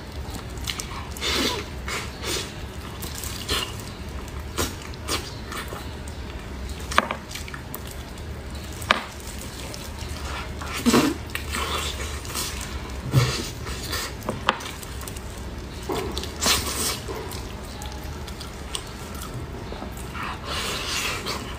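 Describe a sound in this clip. Meat tears apart with wet squelching sounds.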